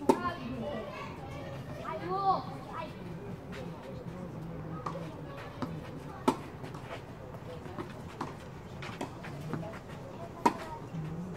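A tennis ball is struck sharply with a racket, back and forth in a rally, outdoors.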